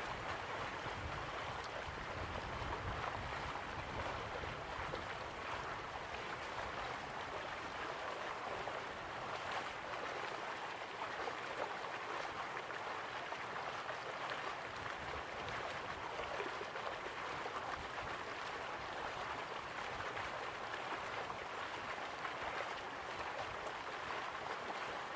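A waterfall rushes steadily in the distance.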